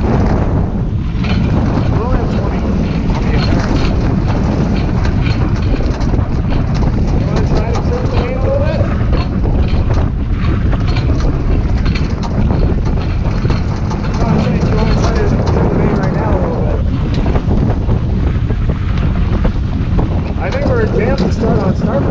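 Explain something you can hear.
Men talk to each other on a boat, partly drowned by wind.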